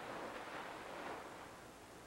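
A woman sings softly nearby.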